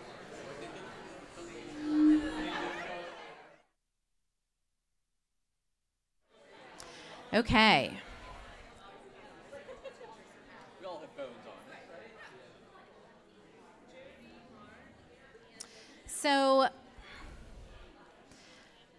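A crowd of men and women chatter all around in a large echoing room.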